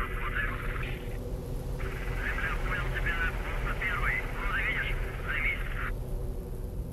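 Birds call overhead at a distance.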